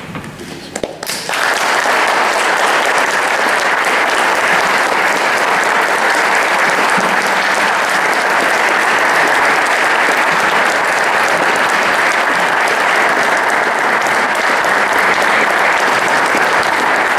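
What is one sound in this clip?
A crowd applauds loudly and steadily.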